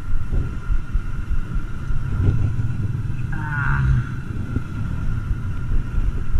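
Wind buffets the microphone outdoors in low rumbling gusts.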